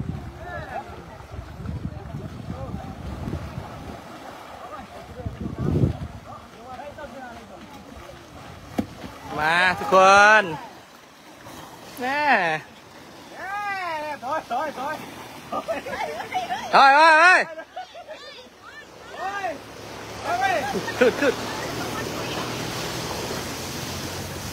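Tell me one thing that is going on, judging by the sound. Elephants splash and wade through shallow water.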